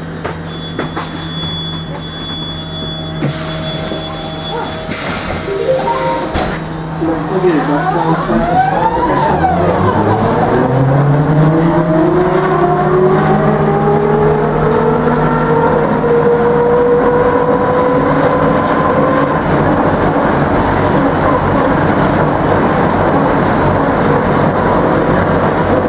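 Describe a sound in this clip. A tram rumbles and rattles along its tracks.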